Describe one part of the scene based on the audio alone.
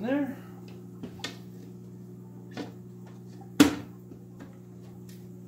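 Glass lids clunk and knock against a plastic frame.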